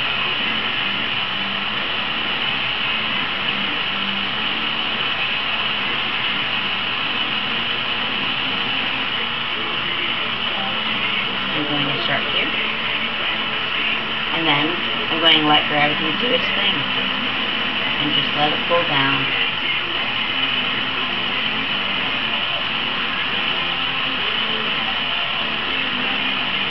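A gas torch roars steadily with a hissing flame.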